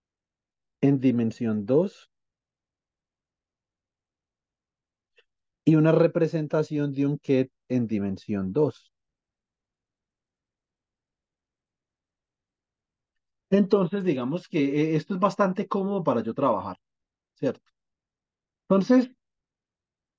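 A man explains calmly over an online call, in short bursts with pauses.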